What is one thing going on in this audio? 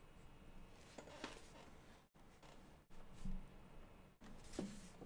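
Paper pages rustle.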